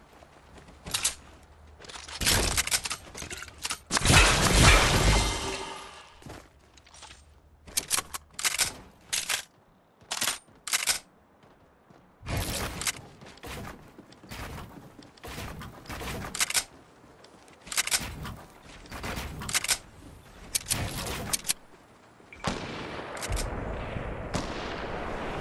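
Gunshots crack in short, sharp bursts.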